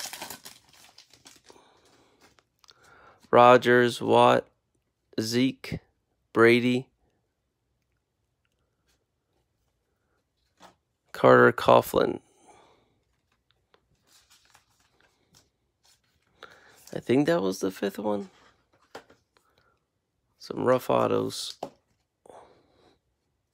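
Trading cards in plastic sleeves rustle and click as they are shuffled by hand.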